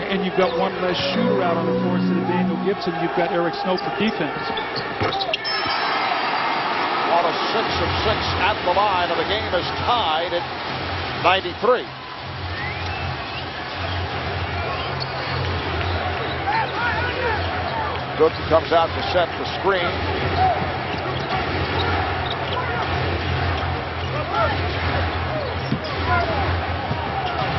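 A large indoor crowd cheers and roars in an echoing arena.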